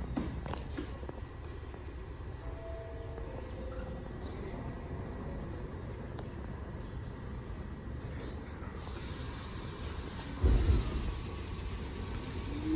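A subway train rumbles slowly into an outdoor station.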